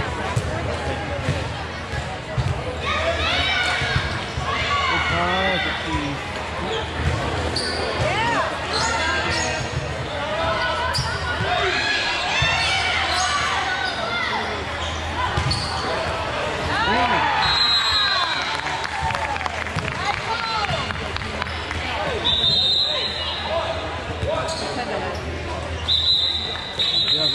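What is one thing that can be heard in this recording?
Young girls shout and call out in a large echoing hall.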